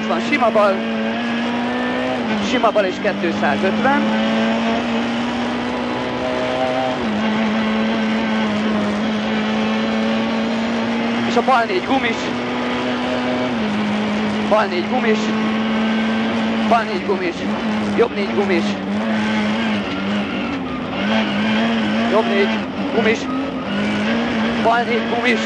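A man reads out quickly and loudly over the engine noise.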